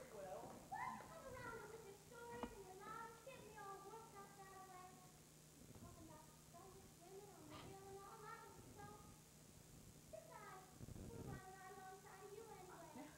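A young woman sings a melody, heard from a distance in a large hall.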